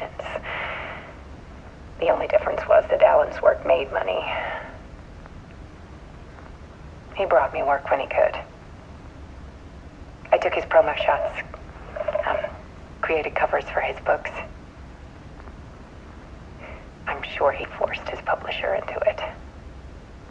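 A woman speaks calmly and warmly, heard through a loudspeaker in a quiet room.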